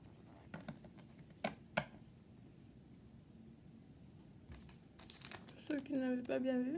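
Playing cards click and rustle as they are handled.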